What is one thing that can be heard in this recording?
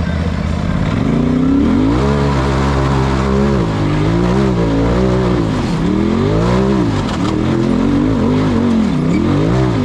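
An engine revs up and down hard.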